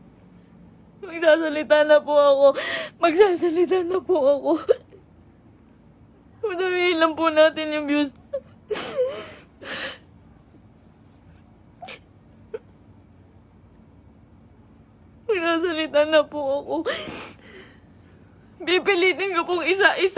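A young woman sobs and wails loudly close by.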